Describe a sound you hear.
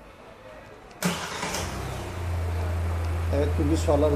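A car engine starts up and settles into a steady low idle.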